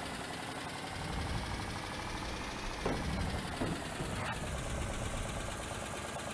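Water splashes under the wheels of a truck.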